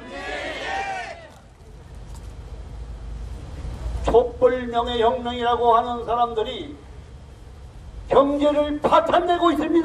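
A man speaks loudly through a microphone and loudspeakers, with animation, outdoors.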